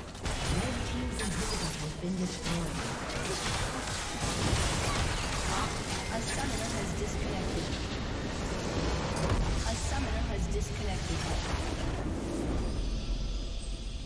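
Video game battle effects clash and crackle loudly.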